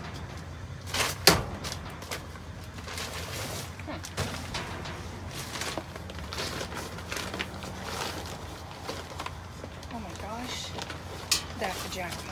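A stick knocks against cardboard boxes.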